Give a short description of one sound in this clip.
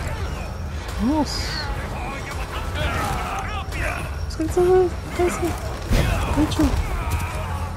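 A man grunts and groans while struggling close by.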